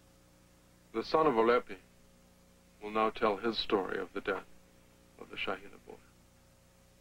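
A man speaks in short phrases, close by.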